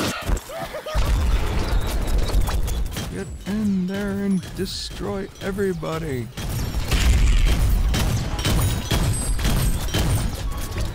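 Explosions boom with deep rumbling blasts.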